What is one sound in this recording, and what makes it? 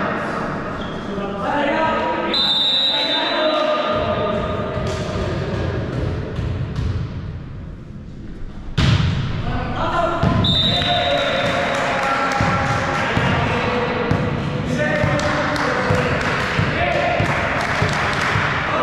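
Players shout and call out across a large echoing gym.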